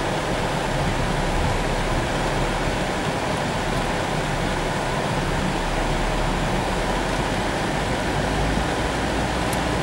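Rain drums steadily on a car's roof and windscreen.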